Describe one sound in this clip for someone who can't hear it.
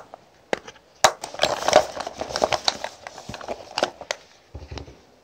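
A plastic case rattles and rustles as it is handled.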